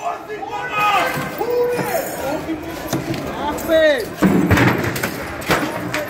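Broken glass crunches and clatters as men climb through a window frame.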